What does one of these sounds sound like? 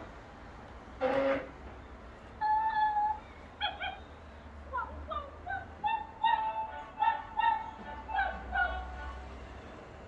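A toy dog makes short electronic barks and yips close by.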